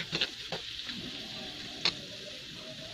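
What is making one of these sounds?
A metal spatula scrapes and clanks against a metal pan.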